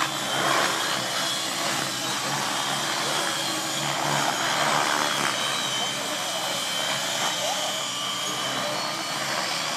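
Several model aircraft engines whine loudly overhead.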